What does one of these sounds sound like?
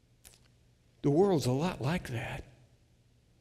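A middle-aged man speaks briefly and calmly through a headset microphone.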